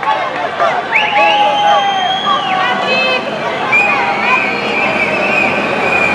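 A crowd shouts and chants in the distance.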